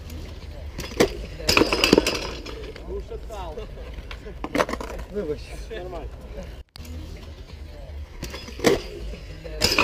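A bicycle crashes and clatters onto concrete.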